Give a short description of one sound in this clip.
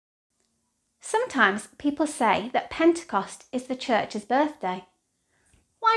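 A young woman speaks calmly and warmly, close to a microphone.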